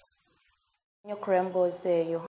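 A woman speaks clearly into a microphone.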